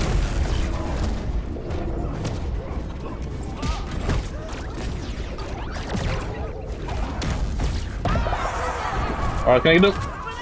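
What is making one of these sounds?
Game fighters strike each other with quick hits and whooshes.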